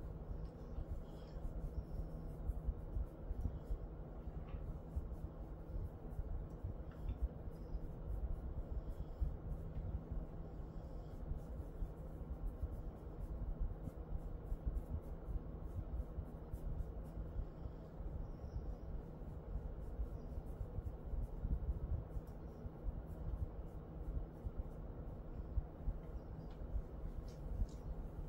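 Hands rub softly through a dog's fur.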